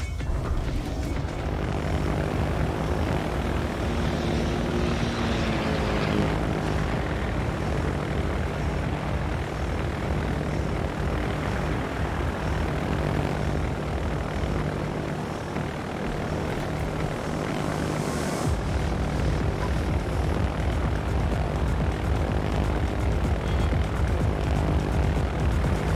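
Propeller plane engines drone steadily.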